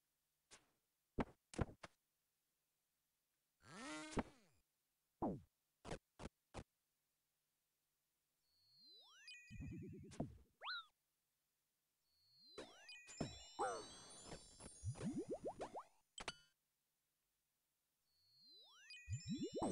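Short game sound effects of blows and spells chime and thud in bursts.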